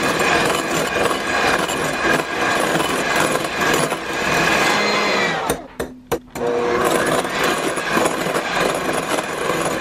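An electric hand mixer whirs loudly, briefly stopping and starting again.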